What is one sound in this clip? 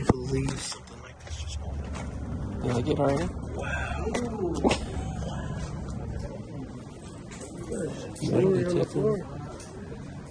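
A man talks outdoors among a group.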